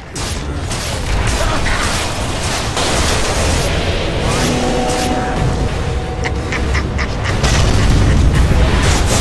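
Magic spells crackle and blast in a loud fight.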